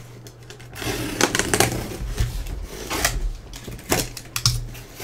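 A box cutter slices through cardboard tape.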